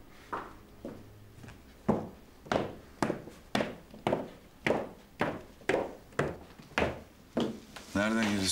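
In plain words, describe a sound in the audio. Footsteps tap steadily down wooden stairs indoors.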